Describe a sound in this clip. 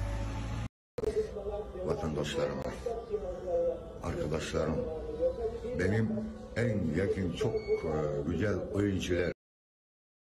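An elderly man speaks calmly and earnestly.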